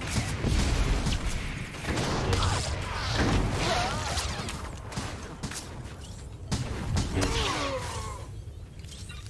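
Blaster shots ring out in a fast fight.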